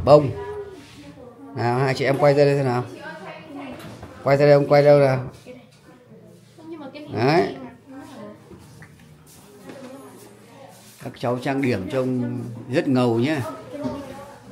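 Young girls talk and chat with animation close by.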